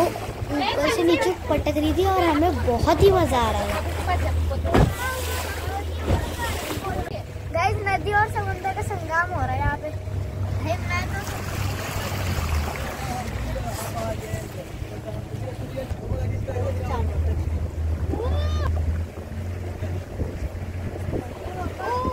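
A boat engine hums steadily with a low drone.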